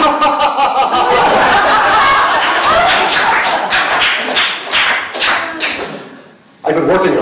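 An audience laughs loudly in a hall.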